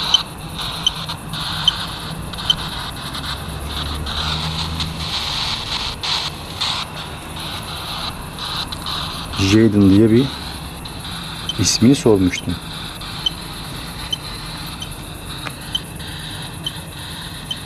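An electronic device gives faint, evenly spaced beeps.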